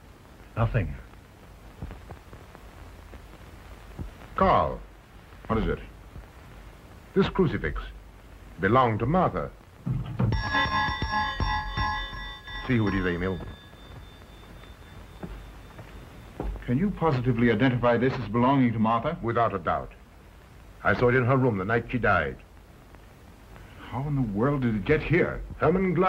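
Adult men talk calmly, heard through an old, hissy film soundtrack.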